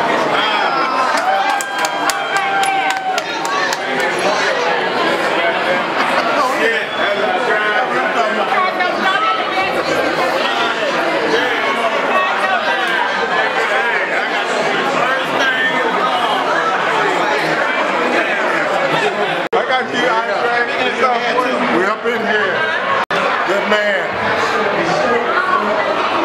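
A crowd of adults chatters in a busy indoor room.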